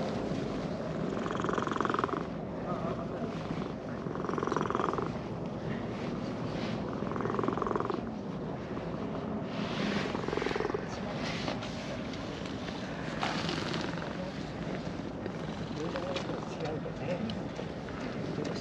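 A cat purrs steadily close by.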